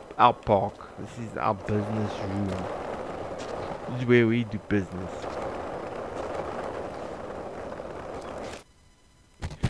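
Skateboard wheels roll steadily over rough pavement.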